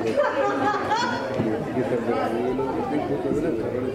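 A group of people chatter and laugh in the background.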